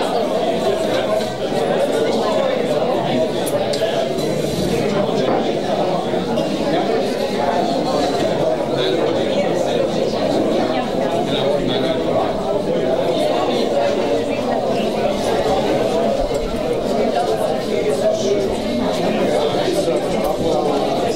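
Many men and women chat at once in a large echoing hall.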